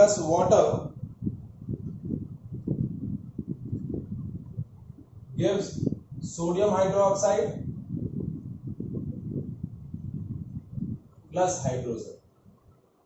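A young man speaks calmly nearby, explaining.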